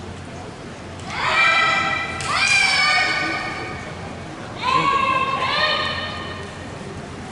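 Young women shout long, drawn-out calls that echo through a large hall.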